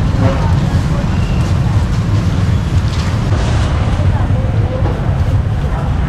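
A young woman talks briefly with another woman nearby.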